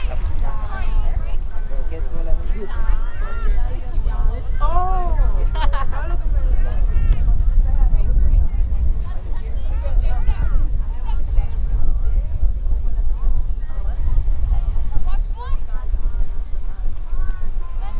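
Young women shout and call out to each other from a distance on an open field.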